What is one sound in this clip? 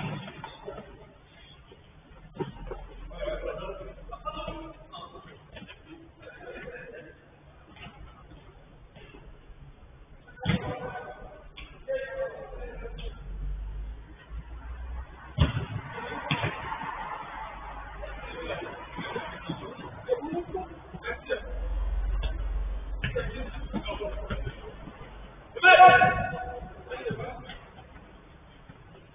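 Young men shout and call out to each other during a game, at a distance.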